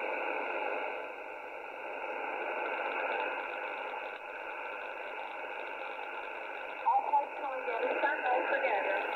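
A shortwave receiver tuned to single sideband hisses with static through its speaker.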